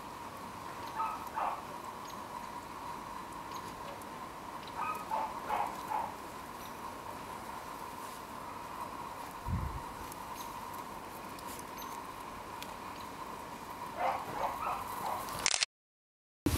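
A dog snuffles and sniffs in the snow.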